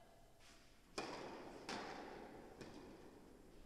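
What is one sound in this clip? A tennis ball is struck with a racket and bounces, ringing through a large echoing hall.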